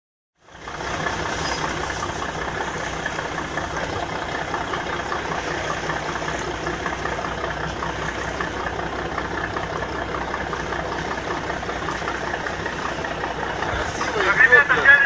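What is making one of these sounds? A speedboat engine roars in the distance.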